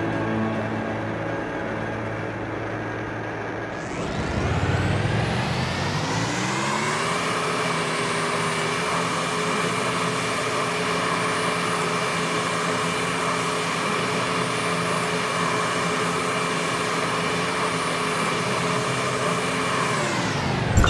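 A motorbike engine hums, then revs up sharply and holds a high, steady whine.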